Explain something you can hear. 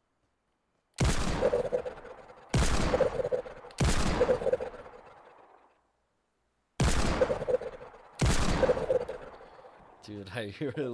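Gunshots ring out loudly, each with a long echo.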